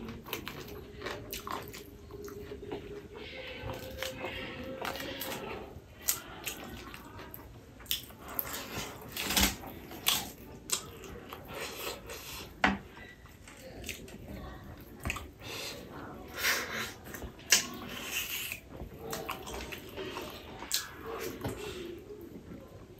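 A man chews and smacks food loudly close to a microphone.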